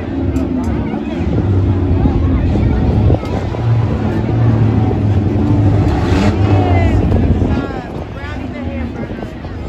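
A crowd murmurs and cheers in the open air.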